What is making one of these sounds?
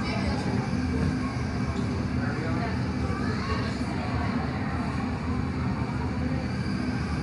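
A glass furnace roars steadily close by.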